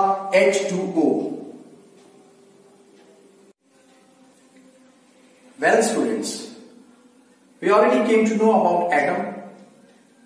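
A middle-aged man explains calmly and clearly, close by.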